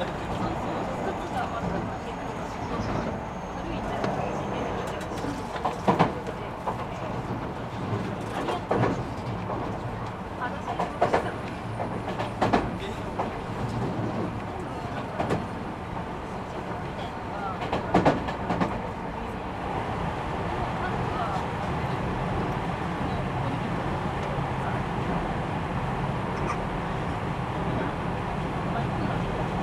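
A train idles with a low steady rumble.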